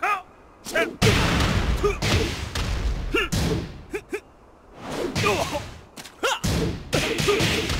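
Water splashes loudly under falling bodies.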